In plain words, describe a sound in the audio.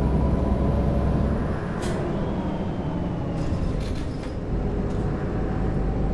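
A car passes by in the other direction.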